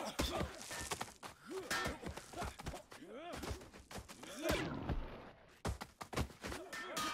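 Blunt weapons strike bodies with heavy thuds and smacks.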